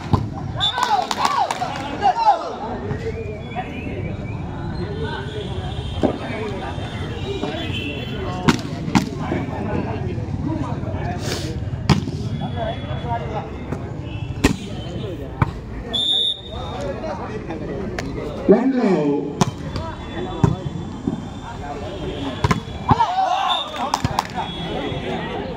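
Young men cheer loudly.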